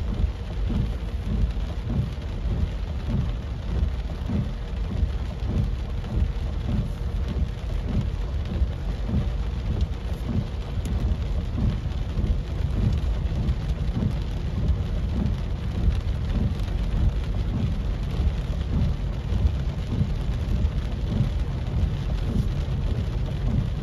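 A car's engine rumbles low and steady.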